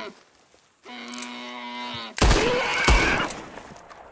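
A knife cuts wetly into an animal carcass.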